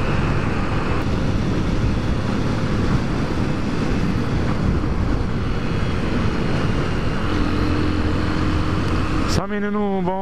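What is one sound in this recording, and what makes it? Wind roars loudly over a motorcycle rider.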